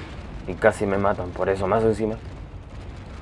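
A young man speaks close to a microphone with animation.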